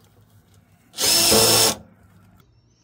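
A cordless drill whirs in a short burst.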